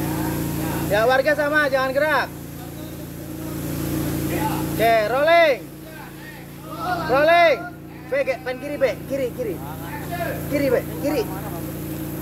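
Children shout and cheer excitedly nearby.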